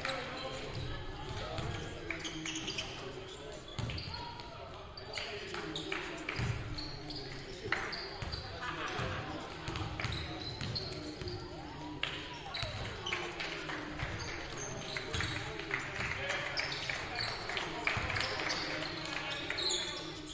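A basketball bounces on a wooden court in a large echoing gym.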